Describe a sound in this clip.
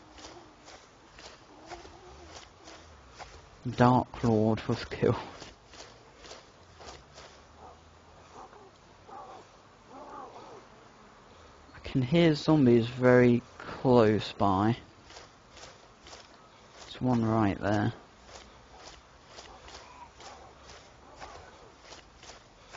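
Grass rustles in a steady rhythm as someone crawls through it.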